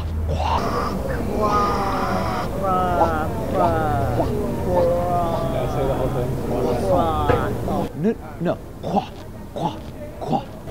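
A man sings, close up.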